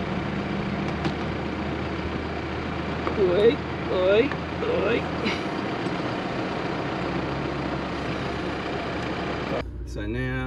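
A car engine hums and tyres roll steadily on a road.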